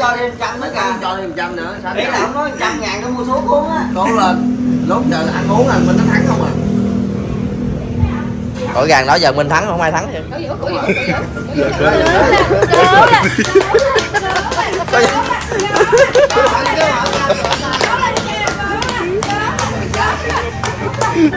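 Young men laugh and talk with animation close by.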